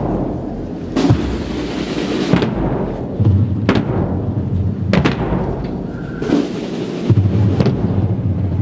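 Bass drums boom in a slow, steady beat.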